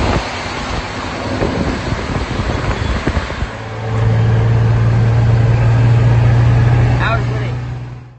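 A truck engine rumbles close by.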